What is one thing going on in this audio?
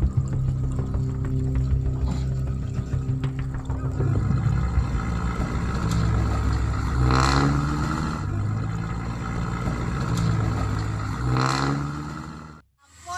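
A truck engine roars and strains at low speed.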